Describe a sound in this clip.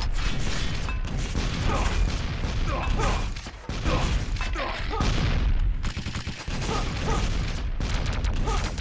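Gunfire and explosions boom repeatedly in a game.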